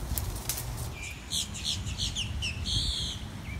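A bobcat gives a run of high, sharp chirping cries.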